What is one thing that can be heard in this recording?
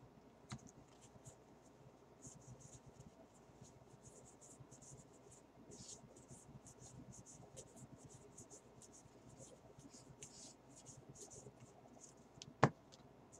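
Trading cards slide and flick against each other as they are sorted by hand.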